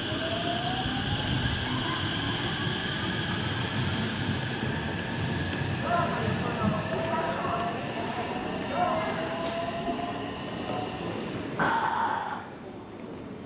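Train wheels rumble and clatter over rails, fading as the train leaves.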